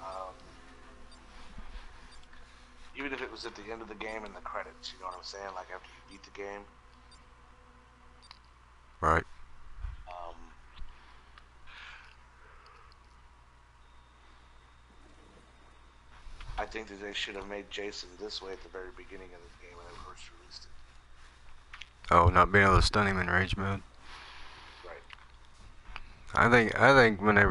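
A man talks casually into a headset microphone, heard close up.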